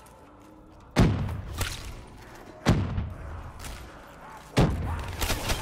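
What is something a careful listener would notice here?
Wooden boards crash and splinter loudly several times.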